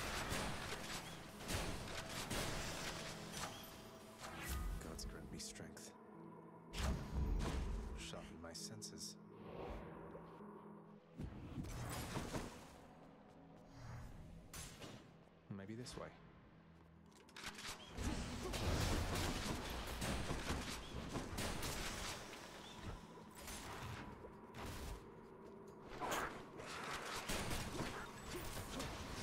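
Game spells whoosh and blast in quick bursts.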